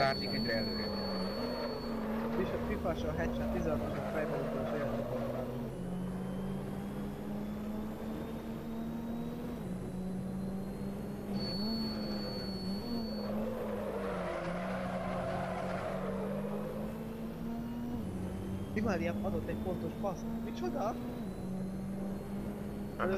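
A racing car engine drones steadily and shifts pitch as it changes gear.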